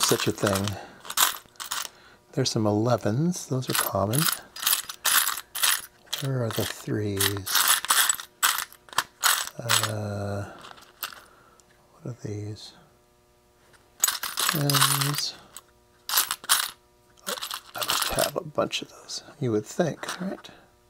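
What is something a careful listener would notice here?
Small metal parts clink and rattle.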